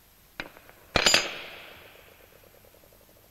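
A metal key drops onto a metal plate with a ringing clang.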